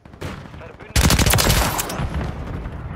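A rifle fires a rapid burst at close range.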